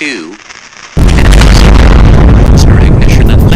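A rocket's engines ignite with a deep, loud roar.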